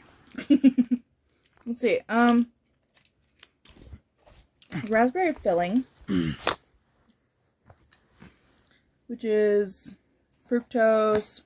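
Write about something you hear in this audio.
A foil wrapper crinkles in hands.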